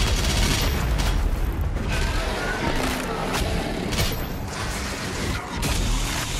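Monsters are torn apart with wet crunching sounds.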